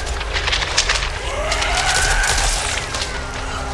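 A zombie growls and snarls up close.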